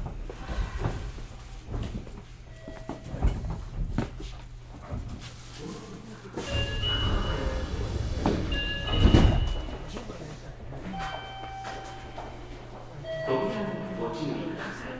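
A stopped train hums steadily at close range.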